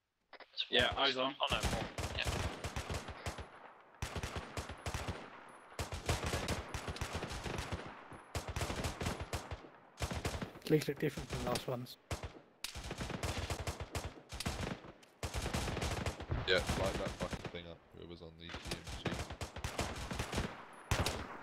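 A machine gun fires in rapid bursts, echoing off close walls.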